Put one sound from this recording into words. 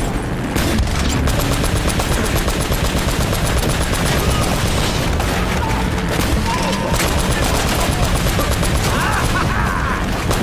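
A jeep engine rumbles steadily as the vehicle drives over rough ground.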